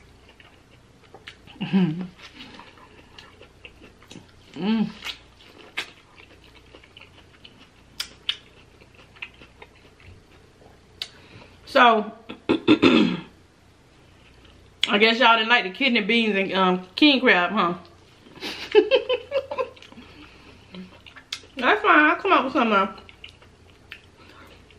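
A woman chews loudly close to a microphone.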